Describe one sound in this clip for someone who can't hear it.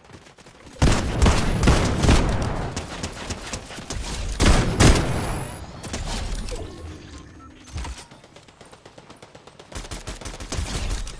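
Gunshots fire in quick bursts, loud and close.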